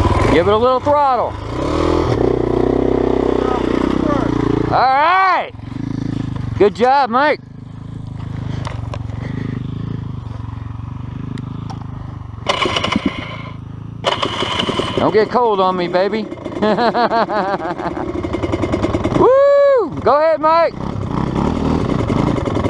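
A dirt bike engine idles steadily nearby.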